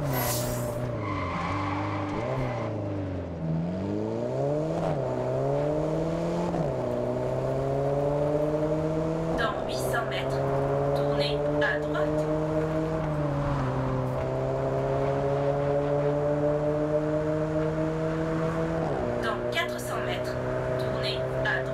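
A car engine revs hard, rising and dropping in pitch as it shifts gears.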